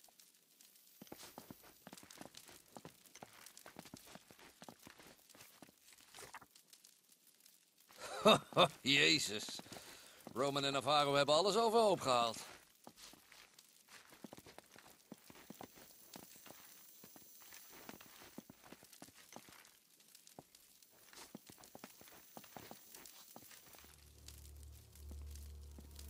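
Footsteps scuff and tap on a stone floor.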